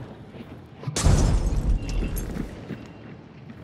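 Flames burst up with a loud, deep whoosh.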